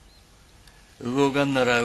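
A younger man speaks calmly, close by.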